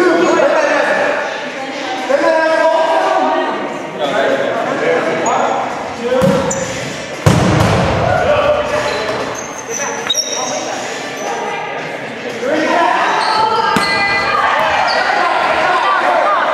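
A rubber ball thumps against the floor and hands.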